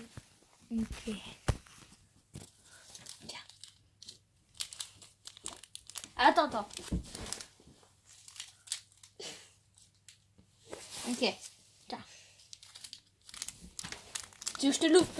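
A girl talks with animation close by.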